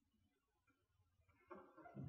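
A pipe organ plays in a large echoing hall.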